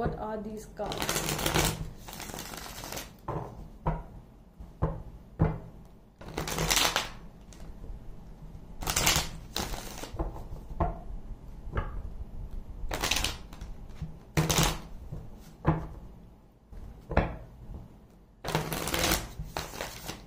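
Playing cards riffle and slap together as they are shuffled, close by.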